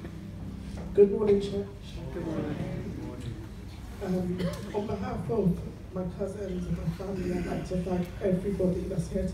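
A woman speaks through a microphone with feeling, echoing in a large hall.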